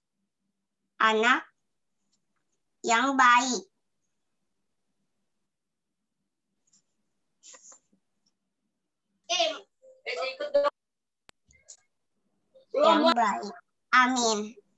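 A young girl speaks slowly and softly over an online call, in short phrases.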